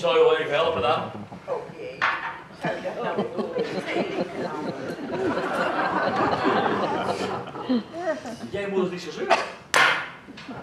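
A man speaks on a stage, heard from the audience in a hall.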